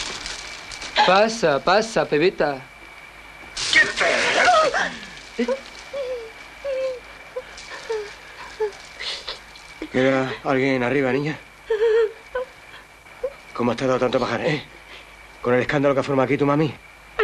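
A young woman speaks tensely close by.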